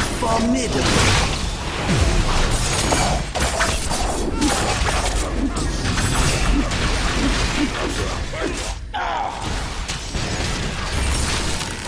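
Magic spells crackle and whoosh in a fast fight.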